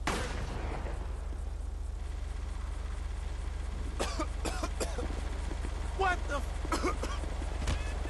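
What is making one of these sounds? A gas canister hisses as it releases smoke.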